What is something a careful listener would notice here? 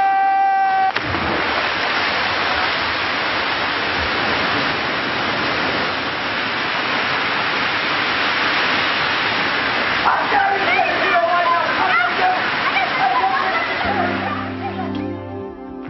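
A waterfall roars and splashes steadily.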